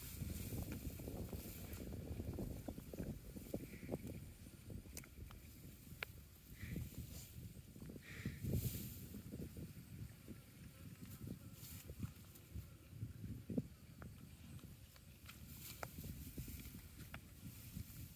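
A water buffalo tears and chews dry grass up close.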